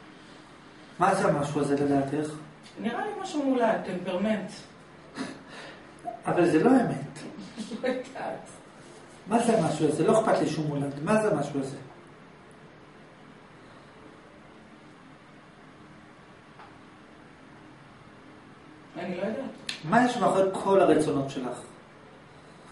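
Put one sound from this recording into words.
A young man speaks calmly and close through a microphone, pausing between phrases.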